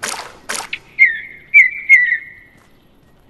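A bird chirps a few short, sharp calls.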